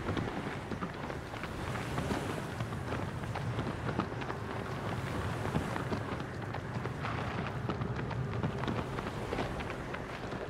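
A horse gallops over rocky ground, its hooves thudding rapidly.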